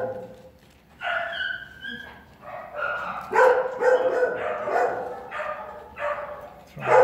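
A man talks to a dog close by.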